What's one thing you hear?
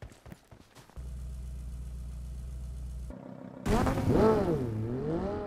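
A car engine idles steadily, then revs up and down.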